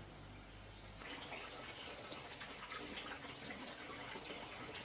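Dishes are scrubbed in a basin of splashing water.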